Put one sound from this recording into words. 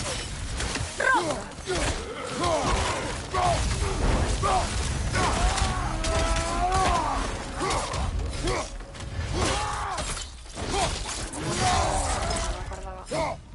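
Men grunt and shout during combat.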